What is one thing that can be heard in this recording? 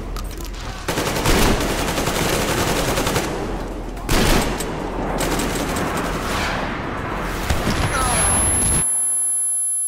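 Gunfire rattles loudly in rapid bursts.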